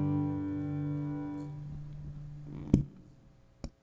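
A band plays a slow song.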